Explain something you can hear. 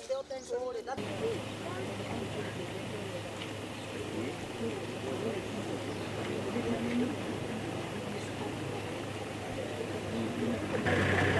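A crowd of people murmurs and talks outdoors.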